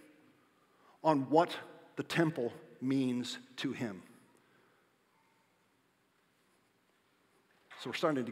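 A middle-aged man speaks with animation through a microphone, with short pauses.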